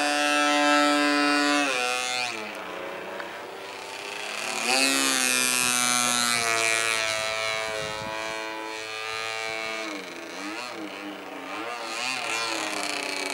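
A model airplane's engine whines high overhead, its pitch rising and falling as it loops.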